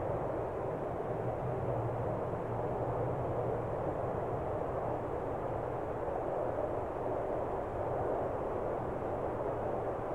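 Wind blows steadily across open snowy ground.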